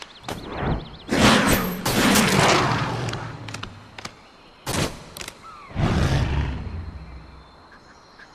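A big cat snarls and roars.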